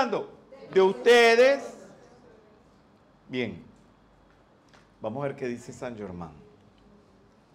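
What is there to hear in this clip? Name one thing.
An elderly man speaks slowly and warmly into a microphone, with long pauses.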